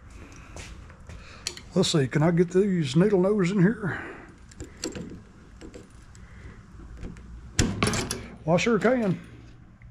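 A control cable clicks and rattles as it is handled.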